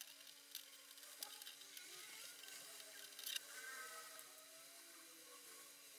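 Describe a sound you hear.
A metal rod slides and scrapes through a bracket.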